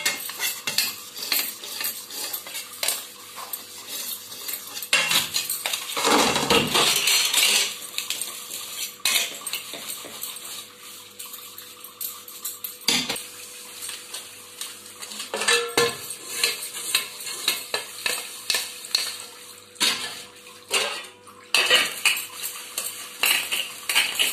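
A scrubber rubs and scrapes against a metal plate.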